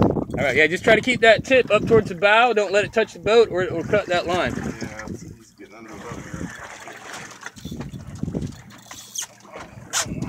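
Water laps gently against a boat hull.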